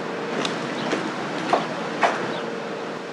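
Knuckles knock on a wooden door.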